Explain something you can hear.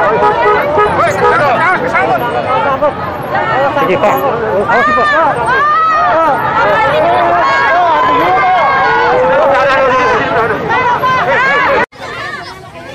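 A large crowd of men and women cheers and shouts loudly outdoors.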